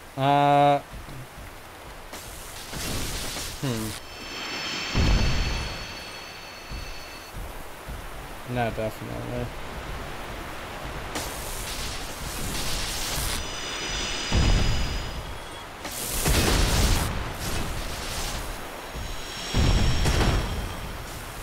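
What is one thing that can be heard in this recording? A sword slashes and strikes a crystal creature.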